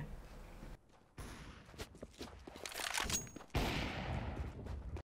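Footsteps tread on stone in a video game.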